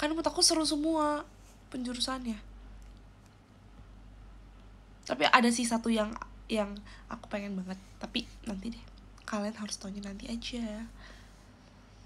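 A young woman talks close to a microphone, in an animated way.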